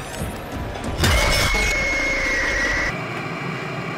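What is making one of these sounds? A loud mechanical screech blares up close.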